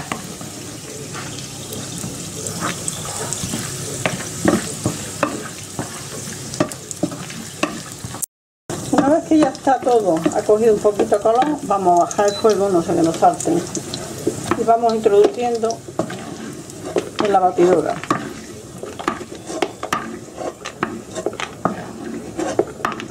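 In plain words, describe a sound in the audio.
Oil sizzles softly in a frying pan.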